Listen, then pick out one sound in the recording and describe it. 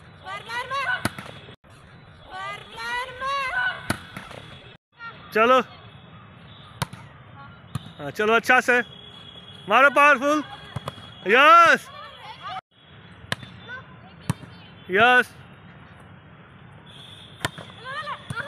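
A volleyball is struck with sharp slaps, again and again.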